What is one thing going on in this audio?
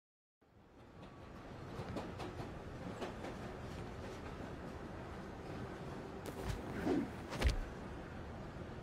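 A subway train rumbles and rattles along.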